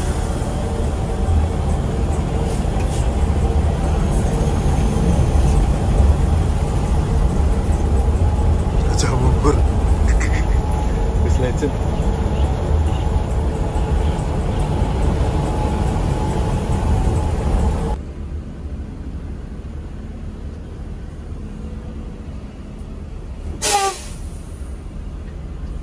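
A large bus engine rumbles steadily as the bus drives along a road.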